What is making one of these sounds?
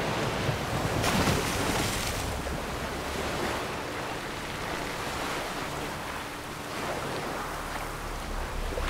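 Water splashes steadily as a swimmer strokes through choppy sea.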